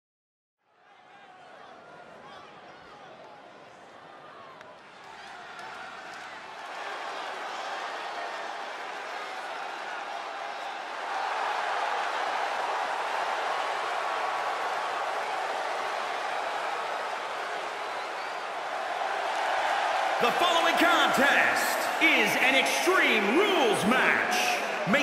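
A large crowd cheers and roars in a big echoing arena, growing louder.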